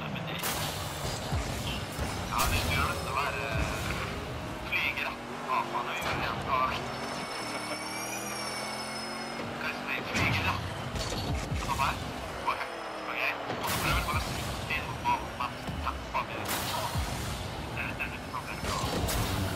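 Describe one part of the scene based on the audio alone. A rocket boost roars in short bursts.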